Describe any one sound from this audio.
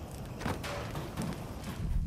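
Fires crackle and roar nearby.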